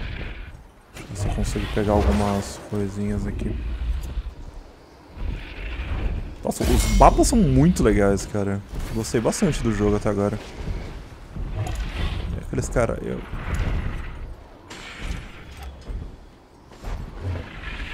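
Large leathery wings flap heavily.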